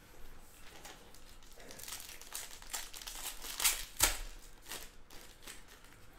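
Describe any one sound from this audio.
A foil pack of cards crinkles and tears open.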